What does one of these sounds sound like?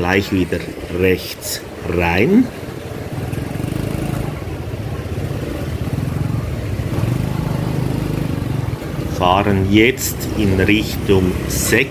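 A motorcycle engine hums steadily nearby.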